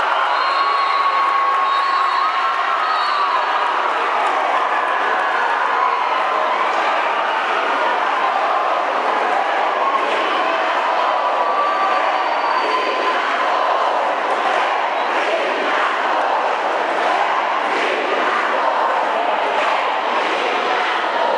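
A large crowd cheers and chatters loudly in an echoing hall.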